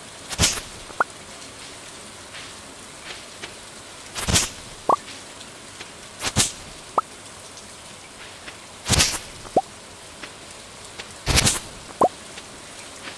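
Short bright pops sound as items are picked up.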